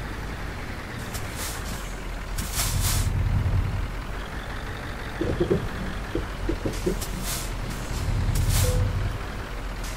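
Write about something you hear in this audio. Air brakes hiss in short bursts.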